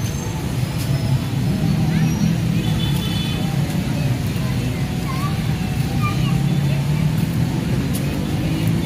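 People murmur in the distance outdoors.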